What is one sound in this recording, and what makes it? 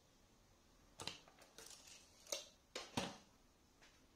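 A tape measure clatters and retracts.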